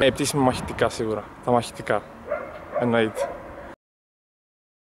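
A young man talks calmly and cheerfully close to the microphone.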